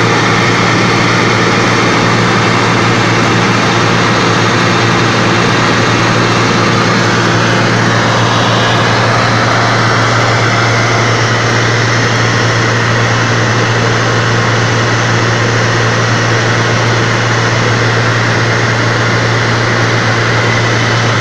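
A small plane's propeller engine drones loudly and steadily.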